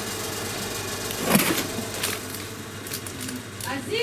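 A cardboard box scrapes and thumps as it is lifted.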